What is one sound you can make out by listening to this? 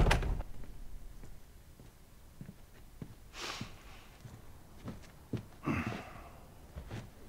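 Footsteps cross the floor.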